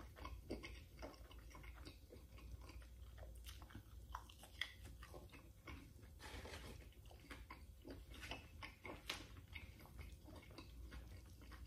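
A man chews food loudly and wetly close to a microphone.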